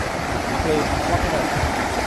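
Floodwater rushes and churns loudly outdoors.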